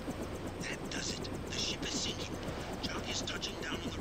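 A helicopter's engine and rotor whir steadily.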